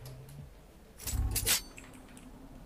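A knife is drawn with a sharp metallic swish.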